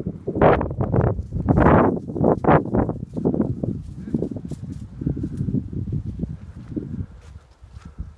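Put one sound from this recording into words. Wind blusters loudly against the microphone outdoors.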